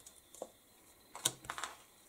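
A paper strip rustles as it is lifted.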